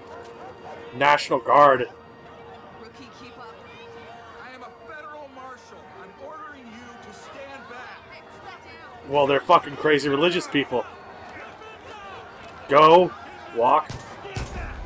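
A man shouts orders loudly.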